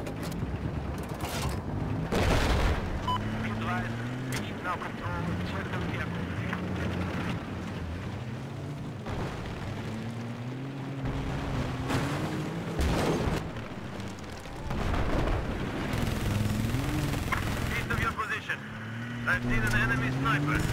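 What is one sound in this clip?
A tank engine rumbles and revs up and down as the tank drives.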